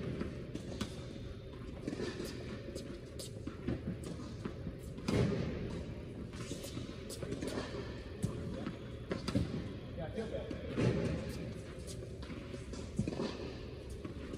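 Sneakers squeak and shuffle on a hard court.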